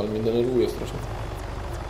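A young man speaks briefly with animation into a close microphone.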